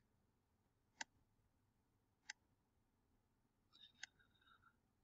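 A mouse button clicks softly a few times.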